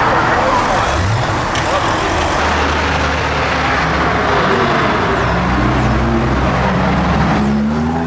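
A sports car engine roars loudly as it accelerates past.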